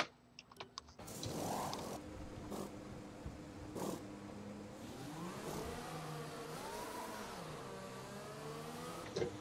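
A racing car engine idles and then revs up, rising in pitch.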